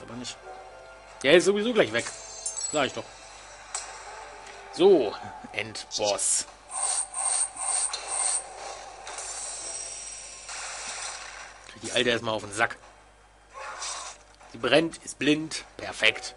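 Bright chiming game effects ring out as gems match.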